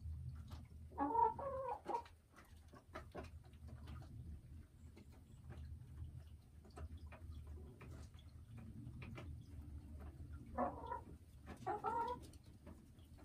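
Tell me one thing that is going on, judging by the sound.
A hen clucks and croaks in short bursts close by.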